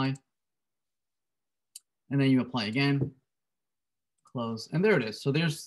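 A man speaks calmly and close into a microphone, with pauses.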